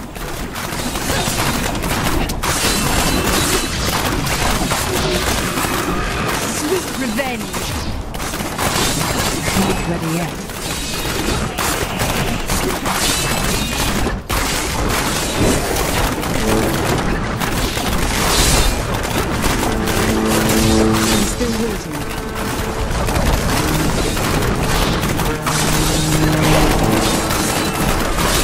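Magic blasts crackle and explode rapidly in a frantic fight.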